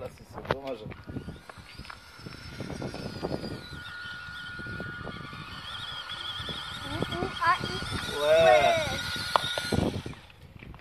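A small electric toy motor whines steadily.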